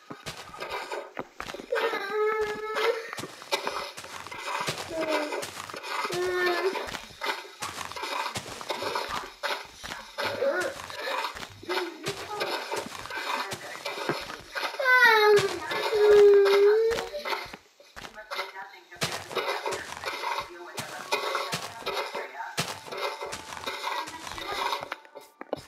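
Dirt crunches in quick, repeated bursts as blocks are dug out.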